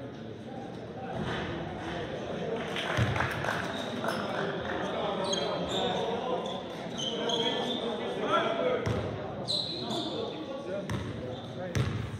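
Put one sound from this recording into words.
Young men talk and call out across the hall.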